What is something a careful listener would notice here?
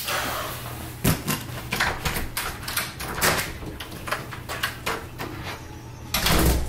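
Footsteps thud across a floor.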